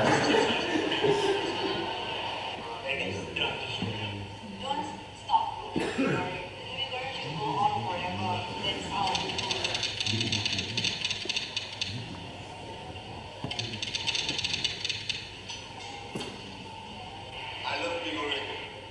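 A man speaks through loudspeakers in a large echoing hall.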